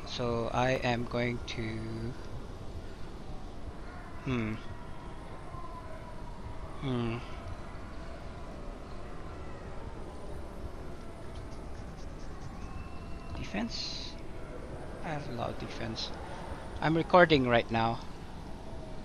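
A man speaks casually into a close microphone, in short bursts.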